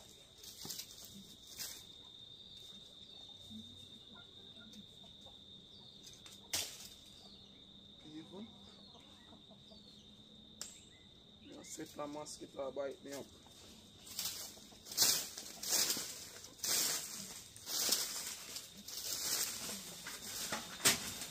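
A rake scrapes and drags across dry dirt.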